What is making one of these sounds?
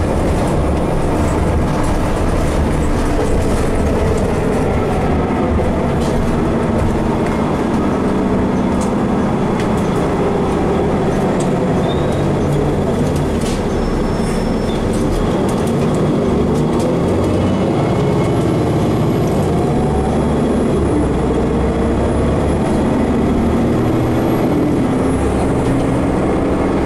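The bus interior rattles and creaks as it drives along.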